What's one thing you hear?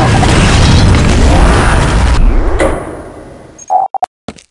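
A rocket explosion booms and rumbles, then fades away.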